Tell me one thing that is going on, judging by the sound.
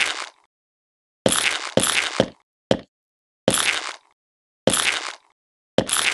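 Short, bright game sound effects burst out again and again.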